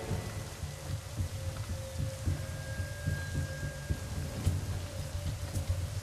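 Footsteps thud softly on a metal roof.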